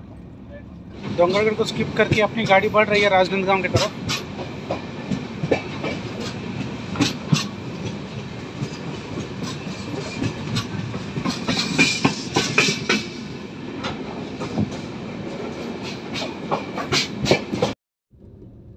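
A train rumbles along the tracks, with wheels clattering over rail joints.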